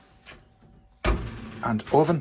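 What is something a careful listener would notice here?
An oven door is pulled open with a soft clunk.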